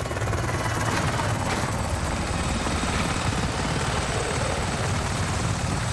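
A helicopter's rotor thumps loudly overhead.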